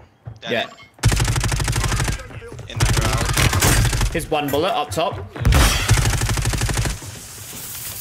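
Rapid gunfire bursts loudly.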